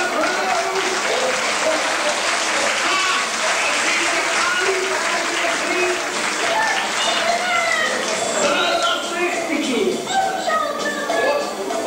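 Several young voices sing together in a large echoing hall, heard from a distance.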